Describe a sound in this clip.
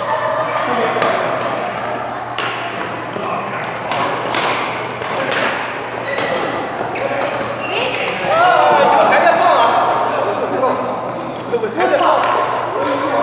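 Badminton rackets smack a shuttlecock back and forth in a large echoing hall.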